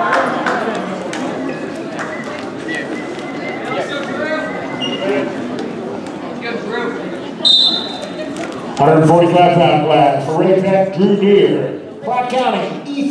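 A crowd of spectators murmurs and calls out in a large echoing gym.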